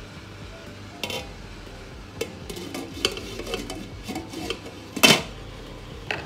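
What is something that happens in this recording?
A glass lid clinks and clatters onto a metal pot.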